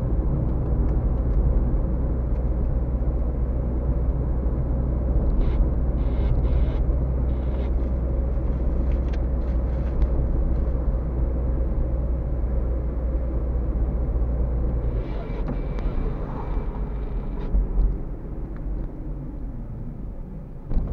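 A car engine hums steadily from inside the cabin.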